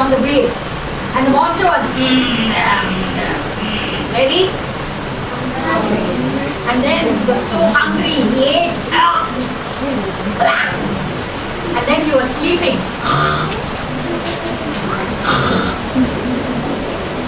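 A woman tells a story with animation, close by.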